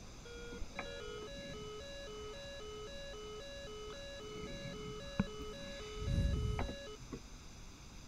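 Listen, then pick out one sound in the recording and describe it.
A cockpit warning tone beeps in a fast, alternating two-note pattern.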